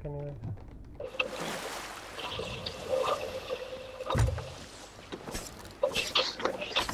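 Waves wash against a wooden ship.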